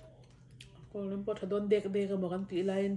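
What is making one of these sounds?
A young woman talks casually close to a microphone.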